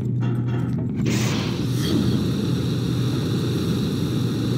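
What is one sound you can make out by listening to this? Steam hisses loudly from a pipe.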